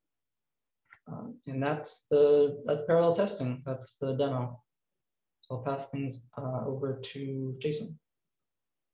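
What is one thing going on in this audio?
A young man talks calmly through a microphone on an online call.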